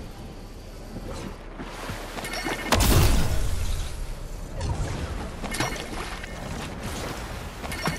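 A gun fires in sharp bursts.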